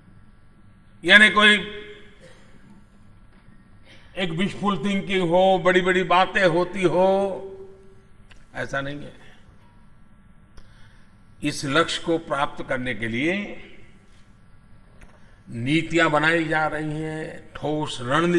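An elderly man speaks with emphasis through a microphone in a large echoing hall.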